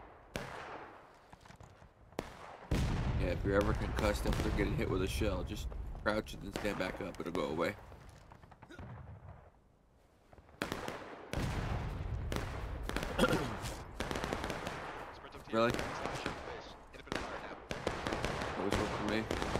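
Rifle shots crack and echo repeatedly.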